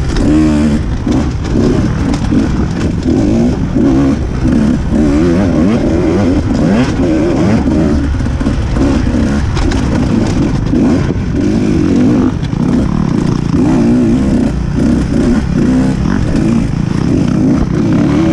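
A dirt bike engine revs and roars up close, rising and falling in pitch.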